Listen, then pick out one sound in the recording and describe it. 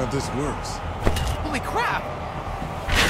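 A man shouts in surprise.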